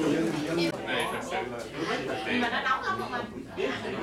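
Men talk calmly in a group.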